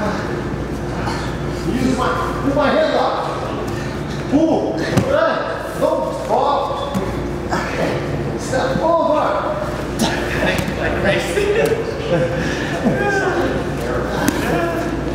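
Bodies shift and scuff against a padded mat.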